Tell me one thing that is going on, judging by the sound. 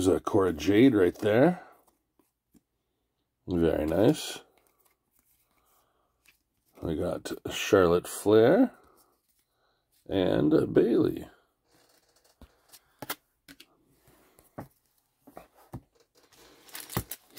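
Trading cards rustle and slide as hands flip through them.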